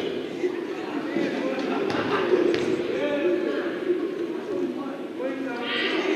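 Young men talk and call out in a large echoing gym.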